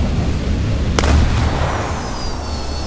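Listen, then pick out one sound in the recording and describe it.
An explosion bursts with a sharp crack and a rumbling tail.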